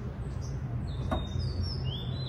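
A car's tailgate latches shut with a sharp click.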